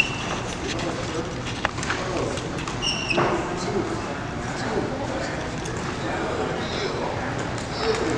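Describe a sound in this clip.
Men talk and greet each other nearby in a large echoing hall.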